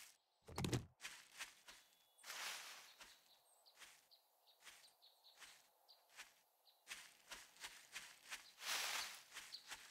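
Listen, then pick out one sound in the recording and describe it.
Footsteps rustle through tall grass at a steady walking pace.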